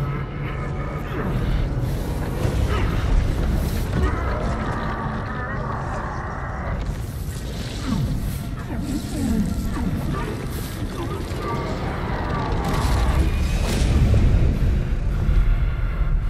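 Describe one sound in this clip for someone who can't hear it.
A huge creature growls and roars with a deep rumble.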